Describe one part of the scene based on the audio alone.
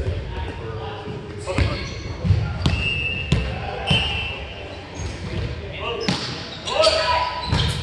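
Men call out to each other across an echoing gym.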